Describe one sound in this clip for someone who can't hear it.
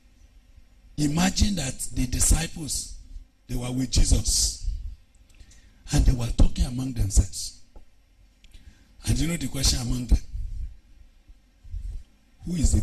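A man preaches loudly and passionately into a microphone, in bursts with pauses between.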